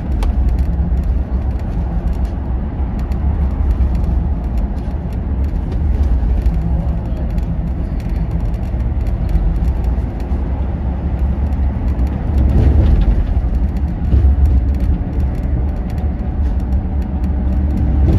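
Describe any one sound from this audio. Tyres roar on a motorway.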